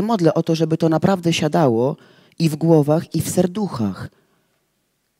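A woman speaks with feeling through a microphone.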